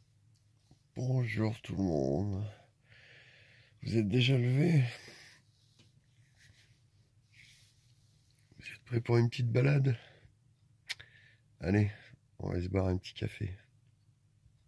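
A man groans and mumbles sleepily close by.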